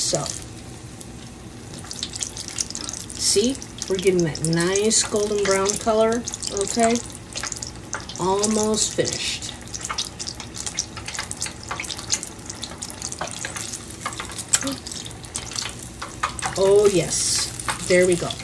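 Tongs scrape and tap against a metal pan.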